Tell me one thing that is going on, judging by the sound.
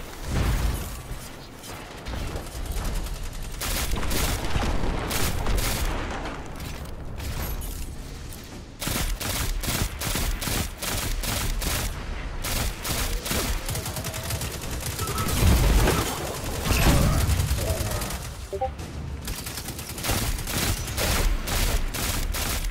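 Rapid gunfire cracks in quick bursts.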